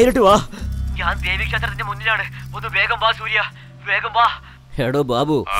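A man speaks over a phone, calm and stern.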